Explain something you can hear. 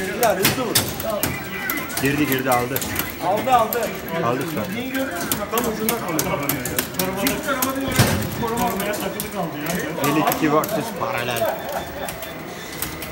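Upbeat arcade game music plays from a speaker.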